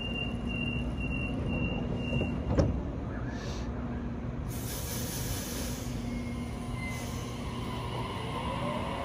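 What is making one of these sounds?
An electric train hums steadily while standing still.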